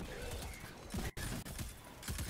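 An explosion bursts loudly.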